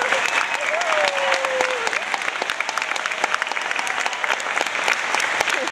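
An audience claps in a hall.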